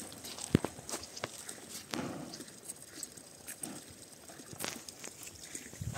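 Water pours from a watering can onto grass.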